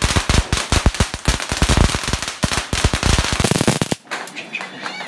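Fireworks crackle and pop in rapid bursts close by.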